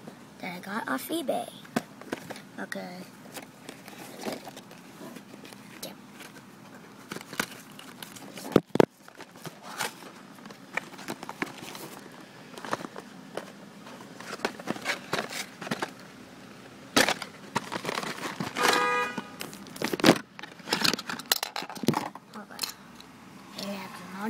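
Plastic packaging crinkles and rustles in hands close by.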